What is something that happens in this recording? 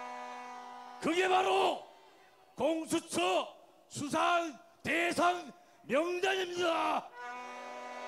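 A large crowd chants loudly in unison outdoors.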